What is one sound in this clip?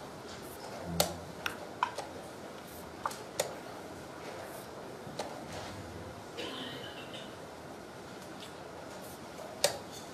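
Wooden chess pieces are set down on a wooden board.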